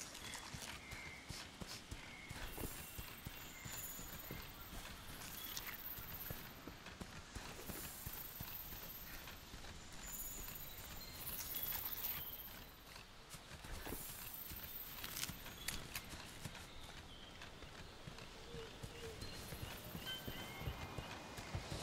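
Footsteps rustle through undergrowth.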